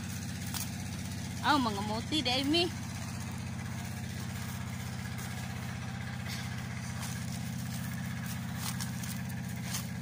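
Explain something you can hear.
Leaves rustle as plants are picked from the ground.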